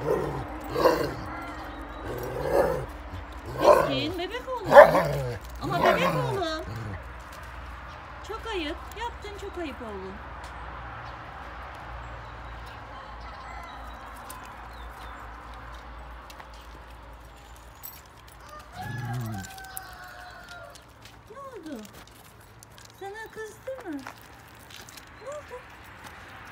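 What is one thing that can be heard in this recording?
A puppy whines and yelps close by in short, high cries.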